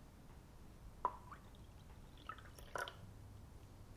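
Crystals clink faintly as they are poured into a glass of water.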